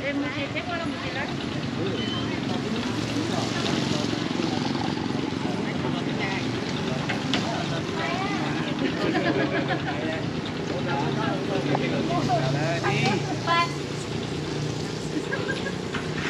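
Motorbike engines idle and hum nearby.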